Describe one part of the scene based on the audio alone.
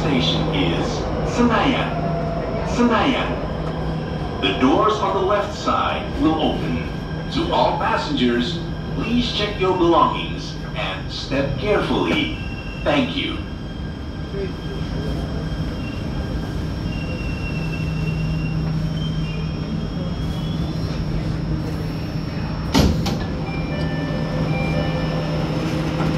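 A train rumbles along steadily.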